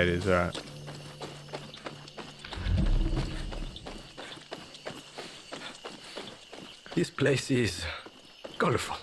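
Footsteps tread steadily on a dirt path.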